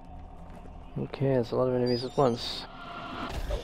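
A monster snarls and shrieks.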